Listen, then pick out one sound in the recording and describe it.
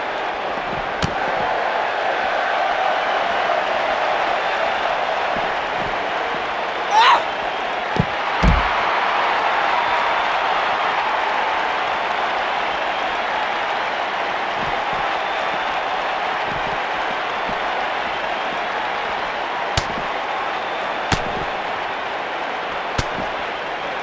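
Punches and body blows land with sharp thuds.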